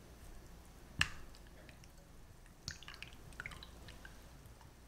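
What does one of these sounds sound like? A spatula stirs and scrapes against a glass bowl.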